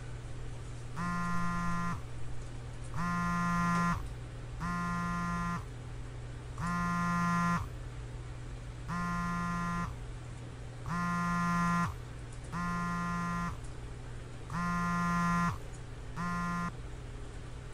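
A phone vibrates in short repeated buzzes.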